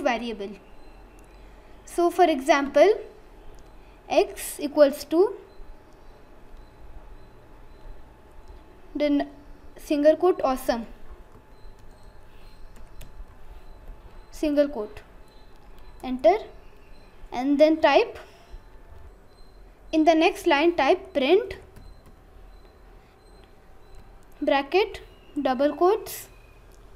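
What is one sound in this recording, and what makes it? A boy speaks calmly and close to a microphone, in short phrases with pauses.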